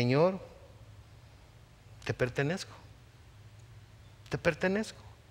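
A middle-aged man speaks in short bursts through a microphone.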